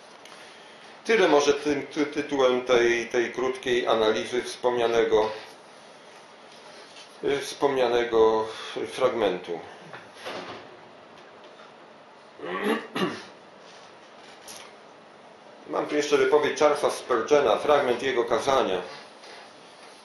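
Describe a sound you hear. An elderly man reads aloud calmly, close by.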